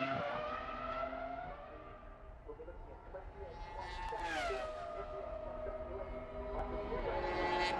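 A racing car engine screams as it approaches, dropping in pitch as it shifts gear.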